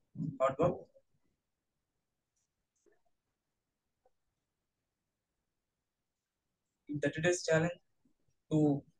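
A woman speaks over an online call, in short bursts with long pauses.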